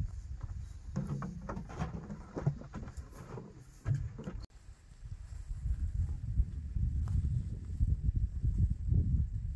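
Dry straw rustles as it is gathered by hand.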